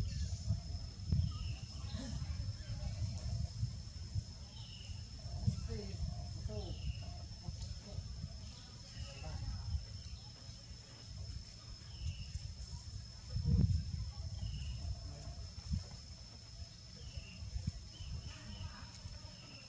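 Young monkeys shuffle and rustle through dry leaves on the ground.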